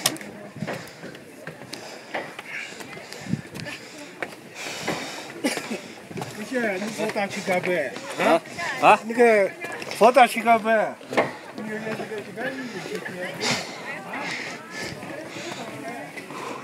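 Footsteps knock on wooden stairs.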